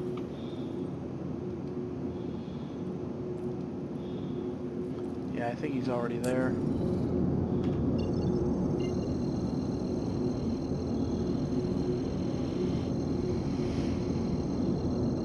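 A spaceship engine hums with a low, steady drone that grows louder partway through.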